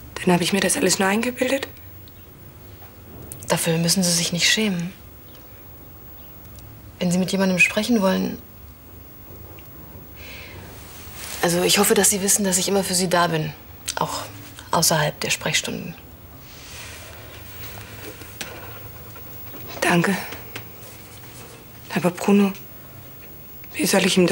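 A woman speaks calmly and seriously nearby.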